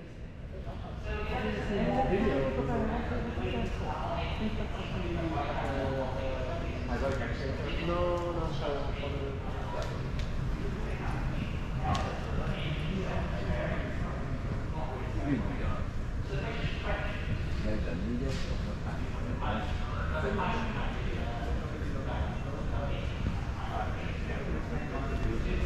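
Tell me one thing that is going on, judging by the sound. Men and women chatter indistinctly around a large echoing hall.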